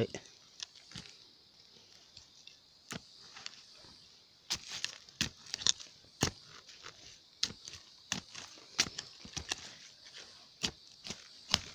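A small hand tool scrapes and digs into loose soil.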